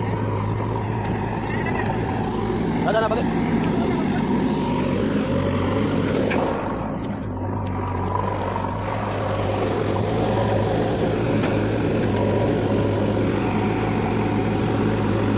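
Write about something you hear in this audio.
A diesel engine idles nearby with a steady low rumble.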